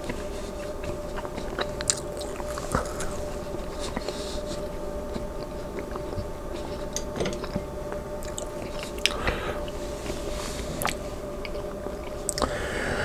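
A man chews food loudly, close to a microphone.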